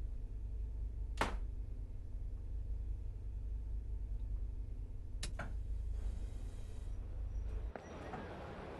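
A train's engine hums low and steady, then cuts off.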